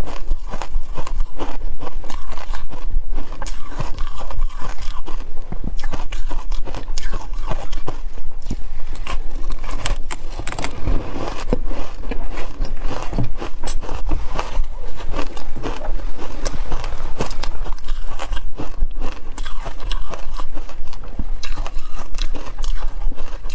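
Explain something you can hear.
Food crumbles and crackles between fingers close to a microphone.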